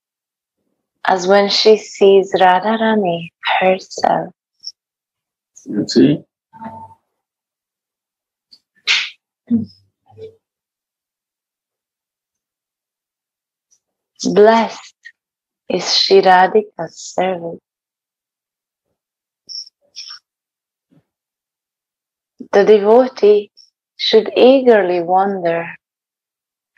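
A young woman sings over an online call, with pauses between phrases.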